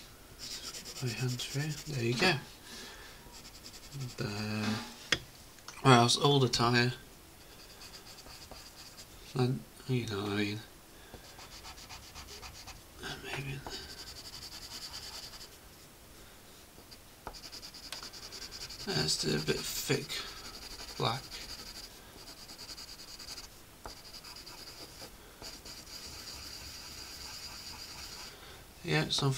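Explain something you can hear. A pencil scratches steadily across paper.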